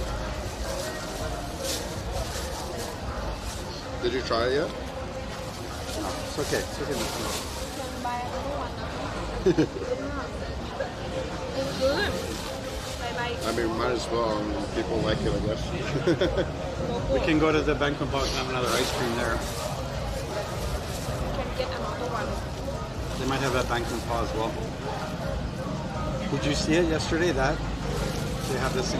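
A man talks casually nearby.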